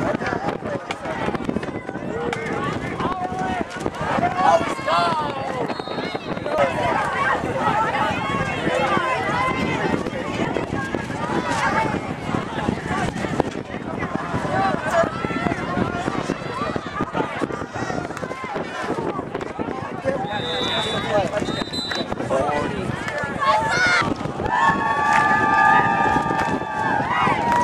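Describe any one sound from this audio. A crowd of spectators shouts and cheers nearby outdoors.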